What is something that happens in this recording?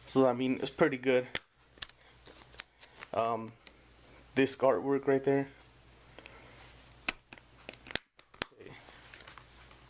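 A plastic disc case clicks open and snaps shut.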